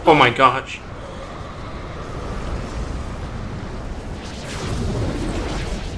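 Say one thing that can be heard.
A powerful blast roars and rumbles.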